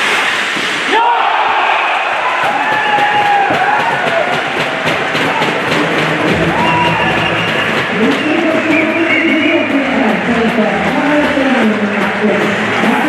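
A crowd cheers loudly in an echoing arena.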